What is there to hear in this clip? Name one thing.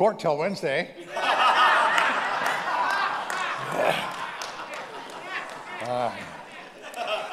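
An elderly man laughs into a microphone.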